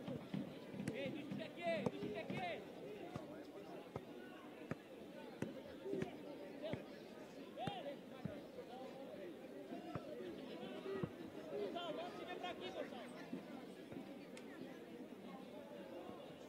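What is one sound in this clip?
Spectators chatter and call out in the open air.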